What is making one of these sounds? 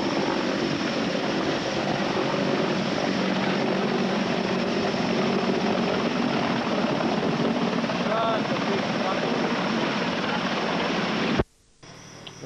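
A large helicopter's rotor thuds loudly as the helicopter hovers and flies low overhead.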